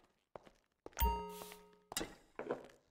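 A glass clinks against a bottle with a bright ring.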